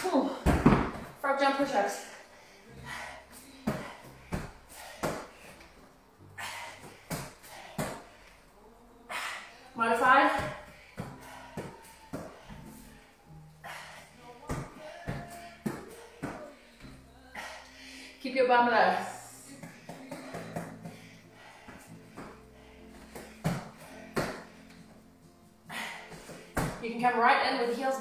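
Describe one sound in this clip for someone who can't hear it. Hands and feet thump on a rubber mat.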